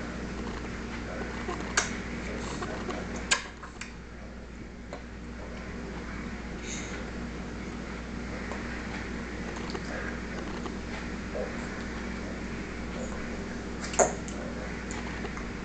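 A baby chews and smacks its lips on food close by.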